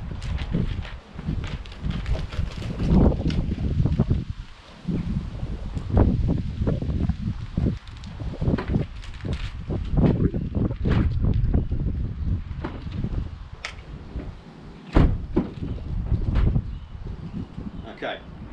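Plastic knocks and rustles against a van roof.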